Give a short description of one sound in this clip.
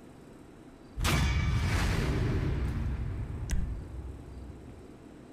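A short, bold music sting plays loudly and fades out.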